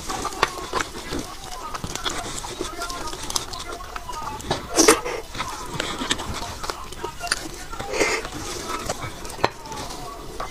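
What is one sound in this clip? A young woman chews and slurps food loudly close to a microphone.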